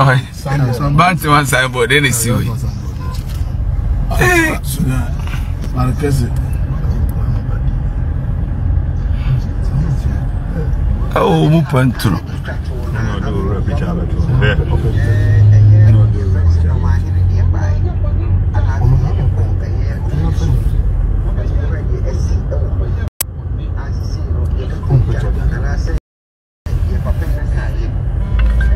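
A man talks close to a phone microphone.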